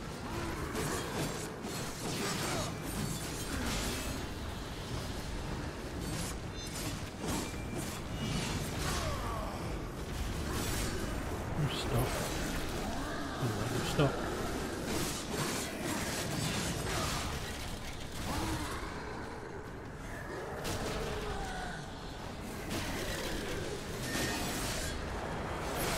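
Blades clash and slash in a game fight.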